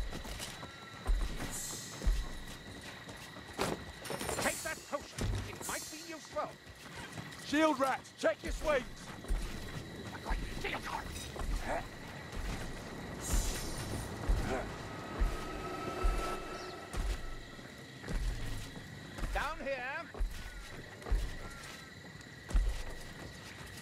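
Heavy footsteps thud quickly on wooden planks and rocky ground.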